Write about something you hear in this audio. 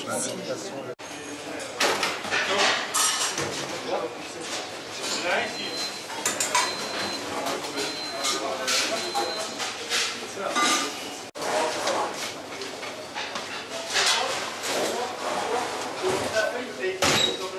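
Men talk in the background.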